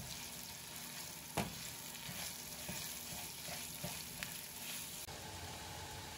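Meat sizzles in a frying pan.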